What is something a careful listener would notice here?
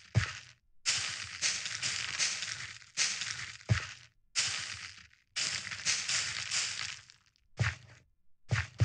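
Bone meal crunches in bursts as it is spread on crops in a block-building video game.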